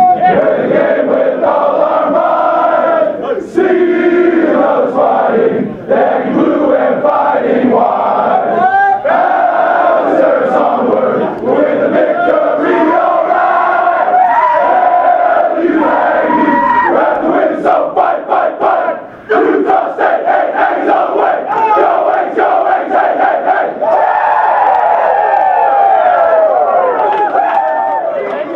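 A large crowd of young men chants and sings loudly together in an echoing room.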